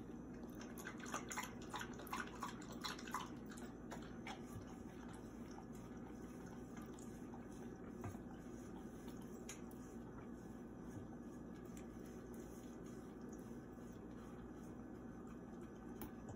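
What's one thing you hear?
A dog laps water from a metal bowl.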